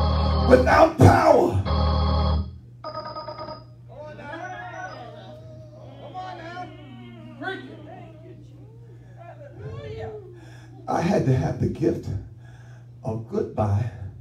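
A middle-aged man preaches with animation through a headset microphone.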